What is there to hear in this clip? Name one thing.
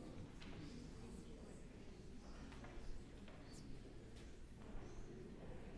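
A man speaks quietly in a large echoing hall.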